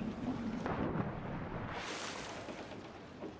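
A body plunges into water with a loud splash.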